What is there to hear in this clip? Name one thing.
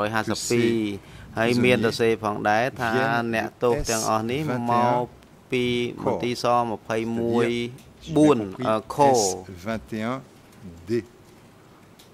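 An older man speaks calmly and formally into a microphone.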